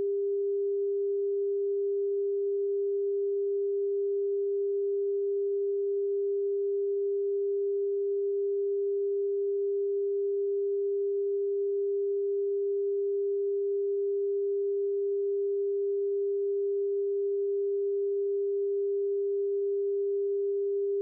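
A steady, mid-pitched test tone hums without a break.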